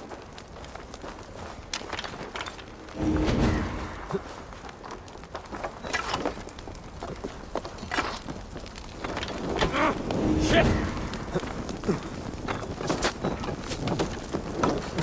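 Heavy footsteps crunch over ground.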